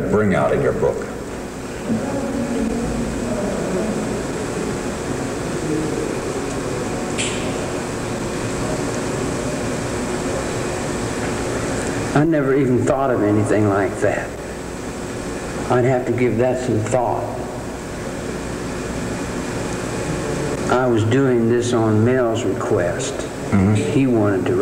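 A middle-aged man speaks calmly and slowly, close to a microphone.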